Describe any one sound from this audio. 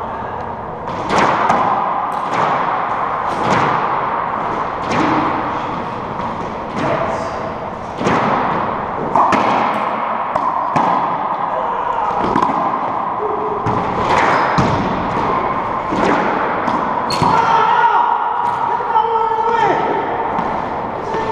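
A racquetball smacks sharply off the walls, echoing around a large hard-walled room.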